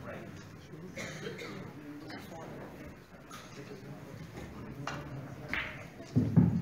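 Snooker balls click together on a table.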